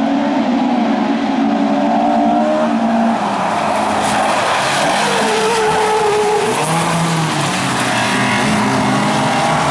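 Tyres scrape and crunch over loose gravel.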